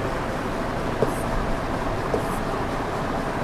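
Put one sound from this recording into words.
A marker taps and squeaks on a board.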